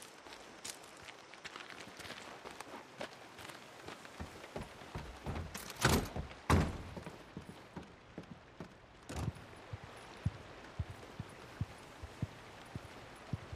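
Footsteps thud on wooden boards.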